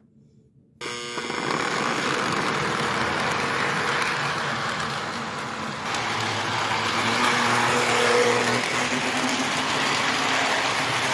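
A toy train rattles and clatters along a metal track close by.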